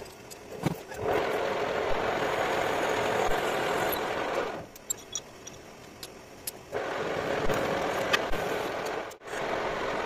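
A drill bit cuts into spinning metal with a loud grinding hiss.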